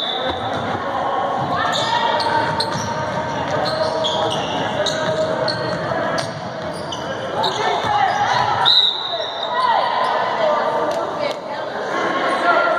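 Basketball players' sneakers squeak on a hardwood court in an echoing gym.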